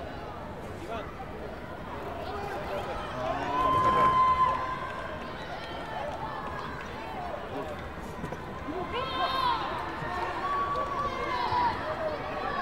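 People shout in a large echoing hall.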